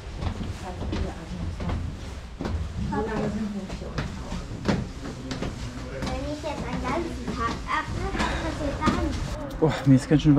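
Footsteps thud on wooden stairs in an echoing cave.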